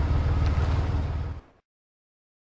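A car engine hums low and steadily, then cuts out.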